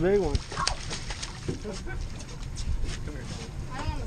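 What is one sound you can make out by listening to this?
A fish splashes in the water beside a boat.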